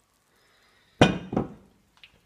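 A glass bottle is set down on a stone counter with a knock.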